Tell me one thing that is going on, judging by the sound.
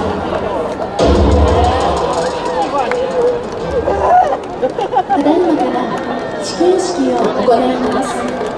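A crowd of men and women chatters and calls out outdoors.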